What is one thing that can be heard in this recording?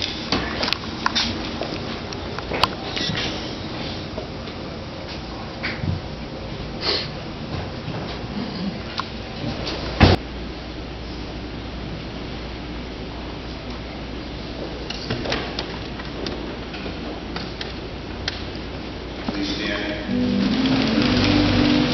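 Footsteps and shuffling echo through a large church as people walk up an aisle.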